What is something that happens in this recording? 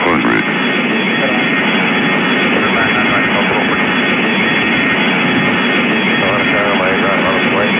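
A small twin-engine jet's engines whine and roar.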